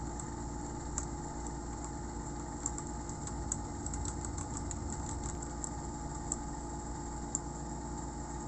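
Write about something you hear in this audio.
Keys click and clack on a keyboard as fingers type.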